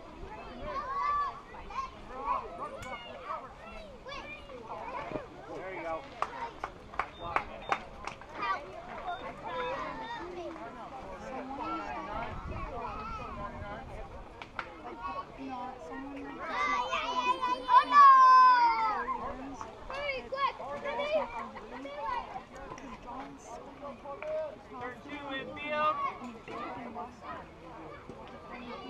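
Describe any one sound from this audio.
Children and adults shout and call out across an open outdoor field.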